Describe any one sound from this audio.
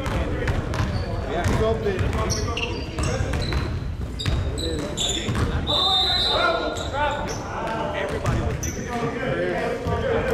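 Young men shout and call out to each other across the court.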